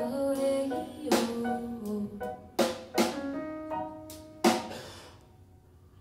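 A keyboard plays ringing notes.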